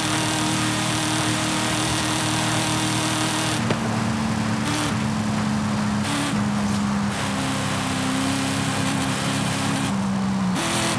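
A powerful car engine roars steadily at high speed, its pitch shifting in steps.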